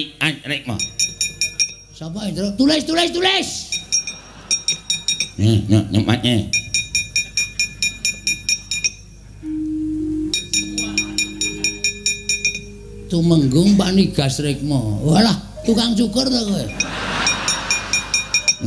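A man speaks with animation in changing character voices.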